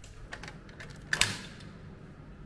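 A key clicks and turns in a door lock.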